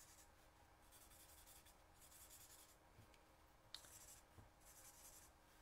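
A felt-tip marker scratches across card in short strokes.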